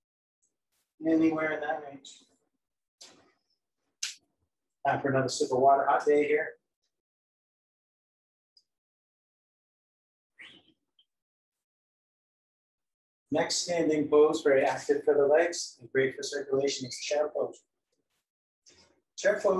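A middle-aged man speaks calmly, close by, in short bursts with pauses.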